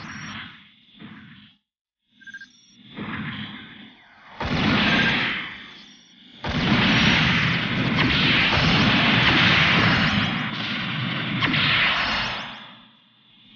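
Rocket thrusters roar in loud bursts.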